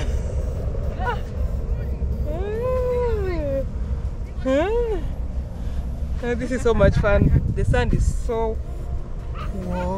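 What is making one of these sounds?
A young woman talks and laughs with animation close by.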